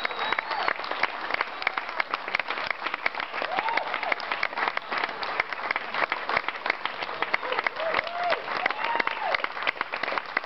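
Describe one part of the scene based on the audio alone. A crowd of men and women cheers and whoops.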